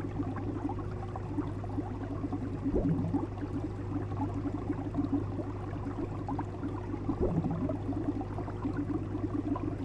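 Water bubbles and gurgles in an aquarium.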